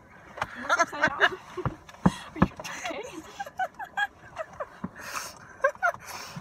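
Young women talk and laugh excitedly close by.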